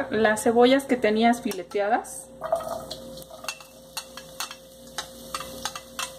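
Onion slices tip from a bowl into a pan.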